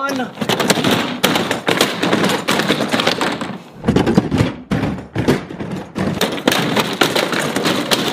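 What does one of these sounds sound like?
A toy car crashes and clatters over rocks.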